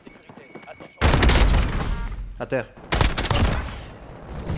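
Gunshots ring out in short, loud bursts.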